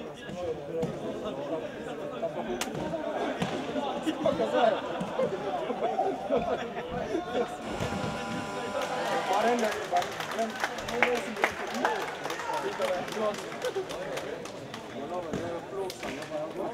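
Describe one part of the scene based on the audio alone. Spectators chatter in a large echoing hall.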